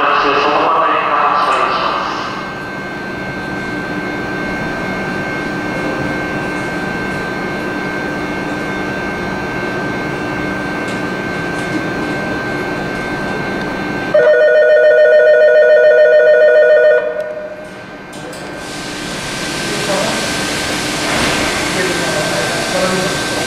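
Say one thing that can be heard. An electric train hums and whines steadily while standing still.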